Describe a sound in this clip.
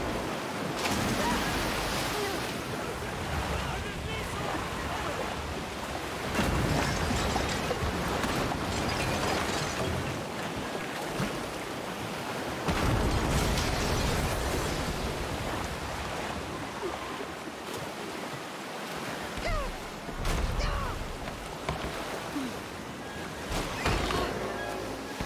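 Floodwater roars and churns loudly.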